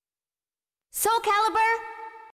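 A bright, ringing fanfare bursts in loudly.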